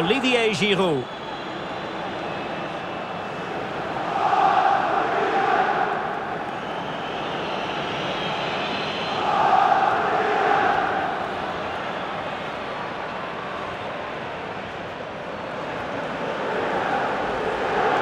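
A large stadium crowd roars and chants in swells.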